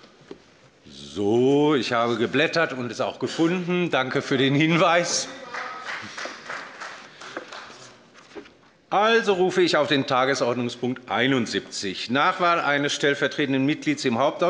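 A middle-aged man speaks calmly into a microphone in a large hall.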